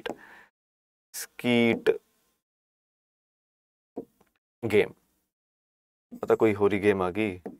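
A man speaks with animation in short bursts, close by.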